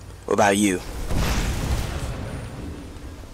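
A spell bursts into a roaring blast of fire.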